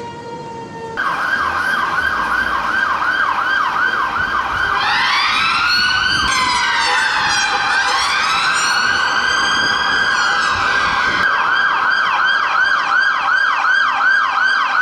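Emergency sirens wail and yelp rapidly.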